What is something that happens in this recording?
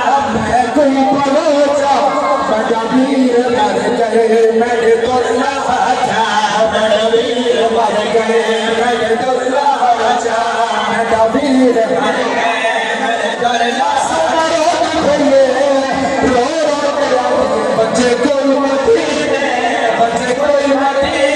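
A large crowd chants loudly together outdoors.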